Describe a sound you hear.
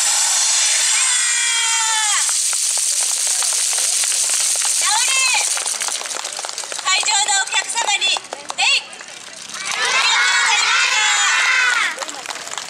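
A group of young girls shout and cheer together in high voices outdoors.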